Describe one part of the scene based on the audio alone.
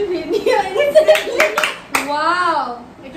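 Young women clap their hands.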